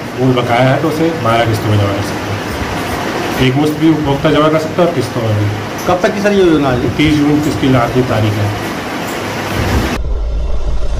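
A young man speaks calmly and steadily, close to a microphone.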